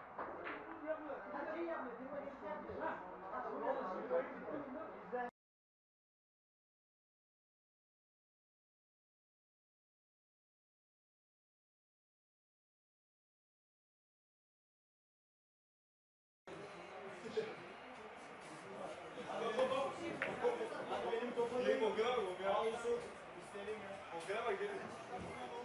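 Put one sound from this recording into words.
Several men talk in the background.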